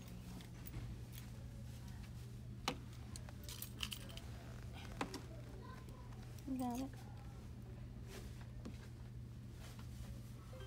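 Fingers tap and click on a machine's buttons and touch panel.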